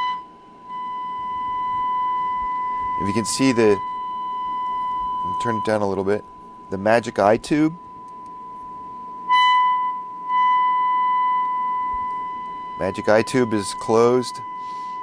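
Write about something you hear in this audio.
A steady high-pitched tone hums from a small loudspeaker.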